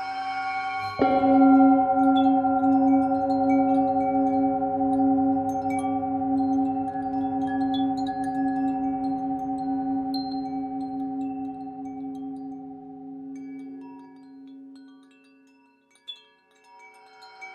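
A singing bowl is struck and rings out, slowly dying away.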